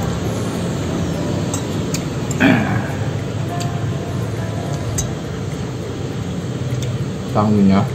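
A spoon scrapes and clinks on a plate.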